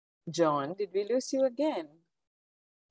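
A young woman speaks warmly over an online call.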